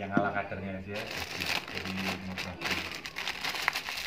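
Loose grain rattles and pours inside a plastic bag.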